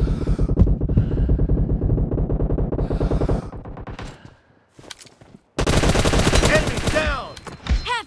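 An assault rifle fires in rapid bursts.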